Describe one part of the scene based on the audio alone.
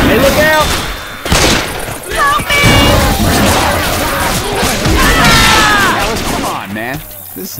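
Guns fire in quick, loud shots.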